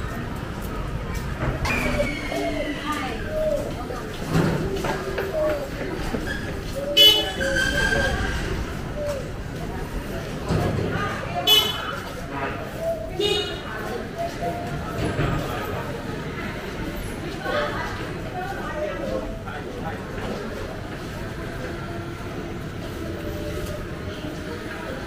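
A busy street murmurs all around.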